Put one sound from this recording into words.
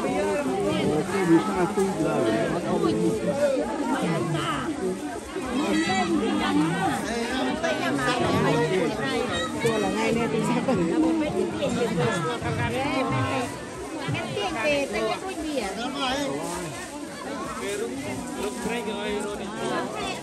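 A crowd of men and women chatter close by, outdoors.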